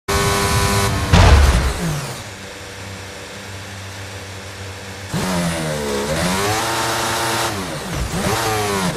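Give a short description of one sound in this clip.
A racing car engine whines and revs up and down.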